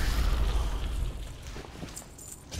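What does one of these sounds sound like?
Blows thud and clash in a fight.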